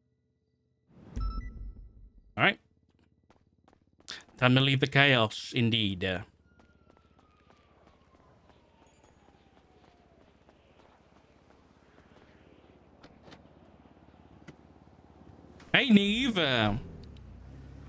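A man talks on a phone.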